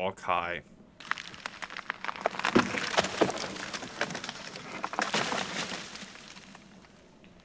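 Footsteps crunch through dry brush and undergrowth.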